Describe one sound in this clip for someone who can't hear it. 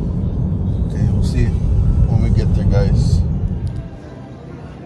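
A car engine rumbles steadily inside the cabin.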